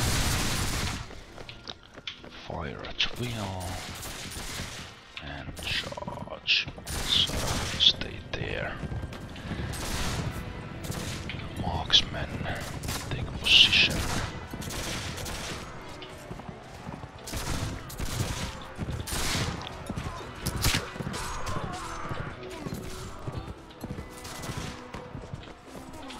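Horses gallop over grass.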